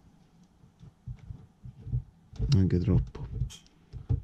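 Fingers press and tap on a circuit board with faint clicks.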